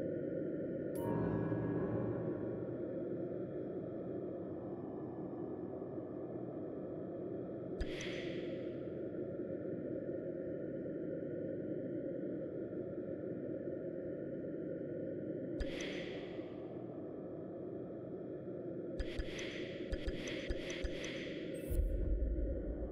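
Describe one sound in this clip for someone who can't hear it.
Soft whooshing menu sounds play as pages change.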